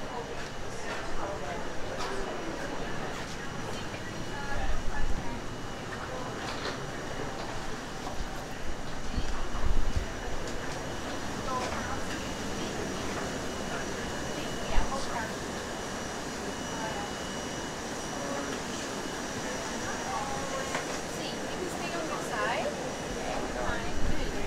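A steady ventilation hum runs throughout.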